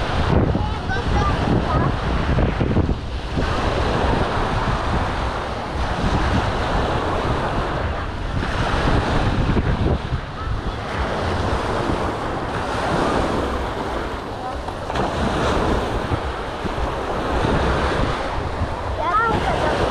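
Small waves break and wash onto the sand.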